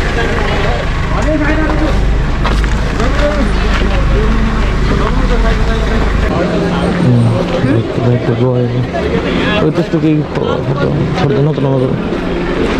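Several men talk with animation nearby, outdoors.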